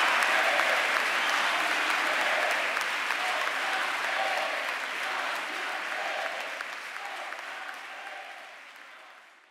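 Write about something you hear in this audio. A crowd of young people laughs loudly.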